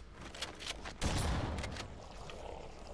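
A grenade explodes with a loud blast.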